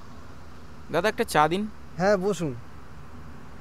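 A young man speaks briefly into a phone close by.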